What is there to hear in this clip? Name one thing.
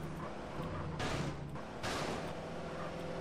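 Car tyres screech briefly as the car swerves.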